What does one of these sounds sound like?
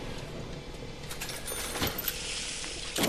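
A cash register drawer rattles open.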